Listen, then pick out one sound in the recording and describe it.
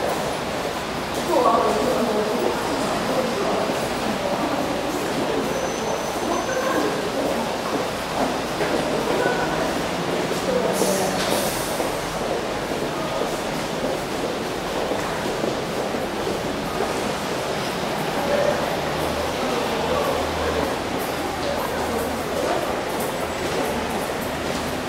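Footsteps tap on stairs in a large echoing space.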